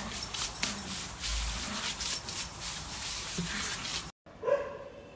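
Water sprays and splashes from a hose.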